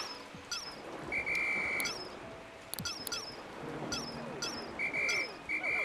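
Bright electronic chirps and tones from a video game sound over and over.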